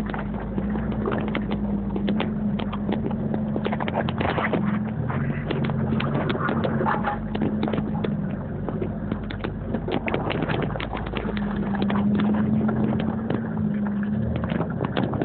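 Tyres splash and crunch over muddy, rocky ground.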